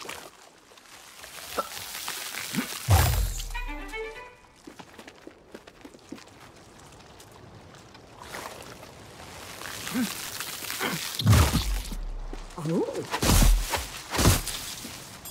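A magical whooshing sound swells and bursts several times.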